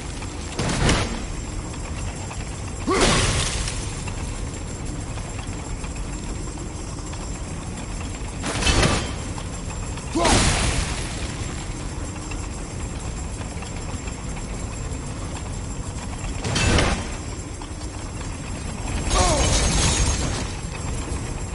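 An axe strikes metal with loud ringing clangs.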